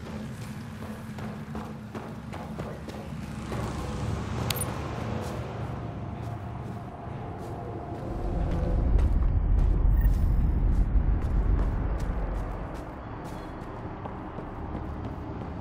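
Heavy footsteps tread over rough ground.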